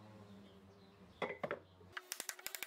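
Wooden boards knock against a workbench.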